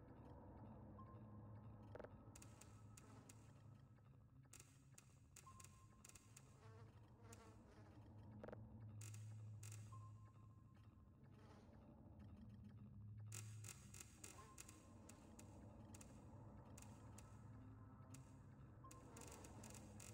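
A short electronic beep sounds every few seconds.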